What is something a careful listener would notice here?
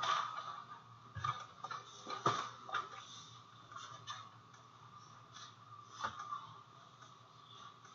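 A microphone is bumped and rubbed with knocks and rustling.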